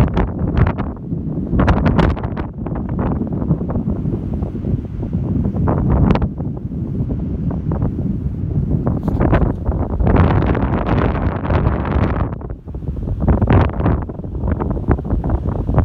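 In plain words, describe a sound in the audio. Strong wind gusts across open ground, buffeting the microphone.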